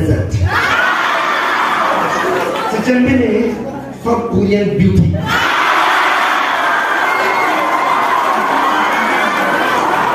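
A middle-aged man speaks loudly through a microphone and loudspeakers in an echoing hall.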